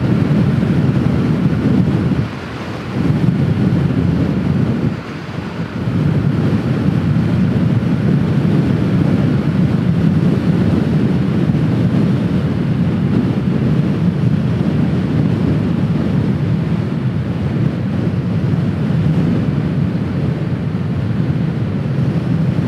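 Wind buffets loudly against a helmet on a moving scooter.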